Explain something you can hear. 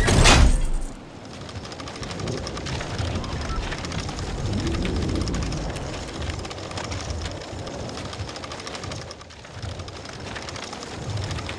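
Wind flutters and rumbles against a glider.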